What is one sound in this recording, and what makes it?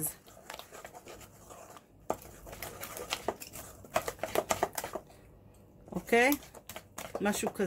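A hand squelches and scrapes through thick wet batter in a metal bowl.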